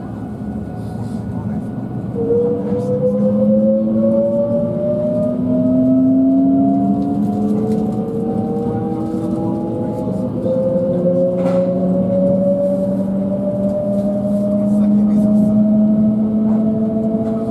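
A train rumbles along its tracks.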